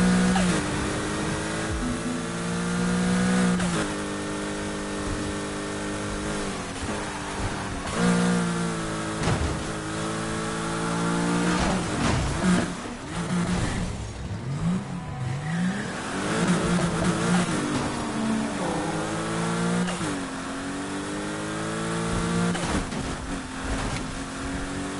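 A car engine revs loudly, rising and dropping in pitch as the gears shift.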